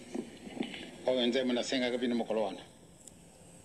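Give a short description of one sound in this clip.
A man speaks through a microphone, heard from a small tablet speaker.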